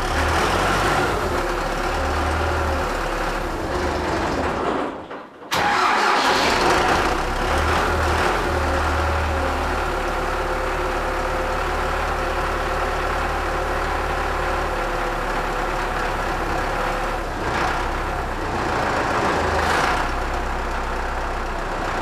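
A diesel tractor engine idles with a steady, rumbling chug.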